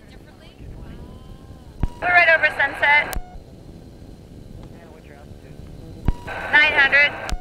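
A small aircraft engine drones steadily.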